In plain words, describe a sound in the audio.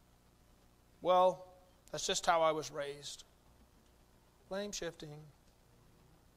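A middle-aged man speaks with animation through a microphone, in short bursts.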